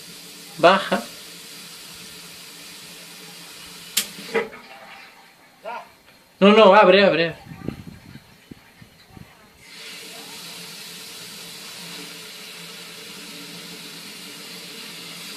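Gas hisses steadily through a regulator.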